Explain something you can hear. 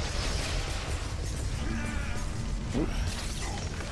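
Energy blasts zap and crackle.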